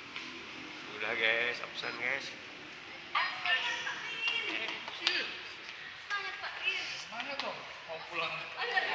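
A man talks close to a phone's microphone.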